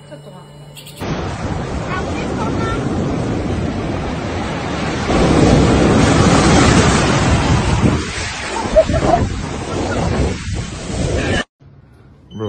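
Heavy sea waves crash and roar close by.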